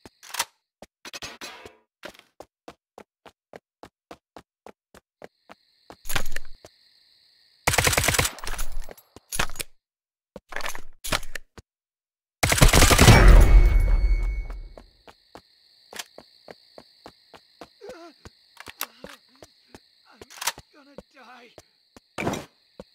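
A rifle magazine clicks out and snaps back in.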